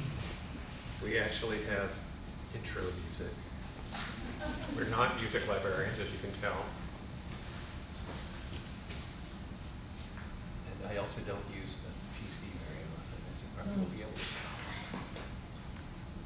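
A man talks briefly near a microphone.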